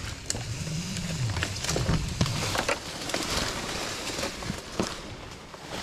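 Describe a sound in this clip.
A rope rubs and slides through a metal device.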